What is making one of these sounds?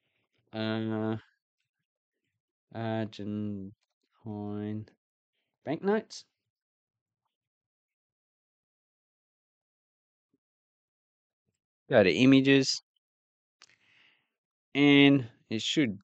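A man speaks close to a microphone in short, drawn-out phrases.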